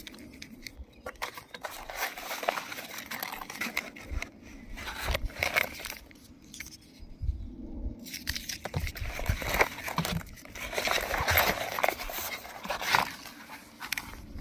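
Fabric and plastic packaging rustle and scrape as hands handle them.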